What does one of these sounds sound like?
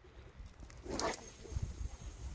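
A fishing rod swishes through the air in a cast.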